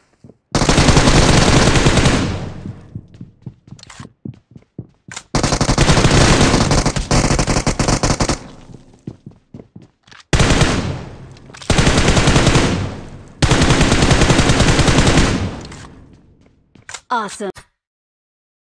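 Rapid gunfire crackles in loud bursts.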